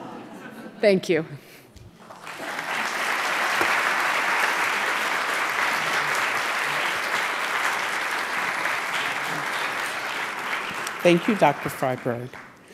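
A young woman speaks into a microphone in a large hall.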